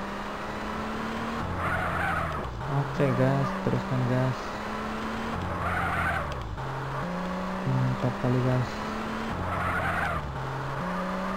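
A car engine drones and revs up and down.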